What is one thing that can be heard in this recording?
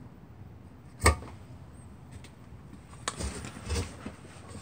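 A metal motor part knocks and clunks as it is handled.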